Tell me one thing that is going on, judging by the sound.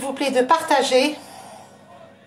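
A middle-aged woman speaks with animation close to a microphone.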